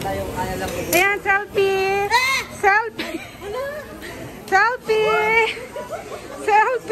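A woman laughs and talks with animation close by.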